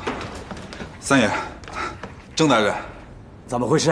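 A middle-aged man asks a question sharply.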